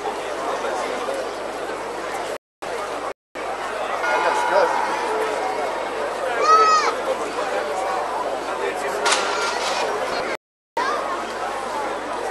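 A large outdoor crowd murmurs and chatters.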